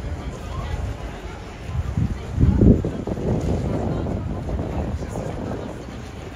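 A horse's hooves clop on stone.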